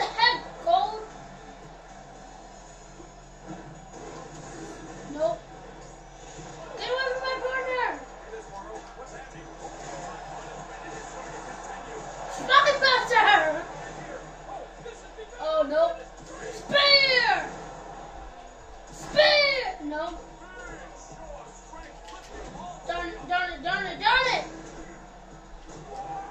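Video game sounds of a wrestling match play from a television loudspeaker.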